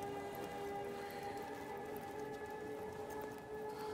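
Torches crackle and hiss with fire.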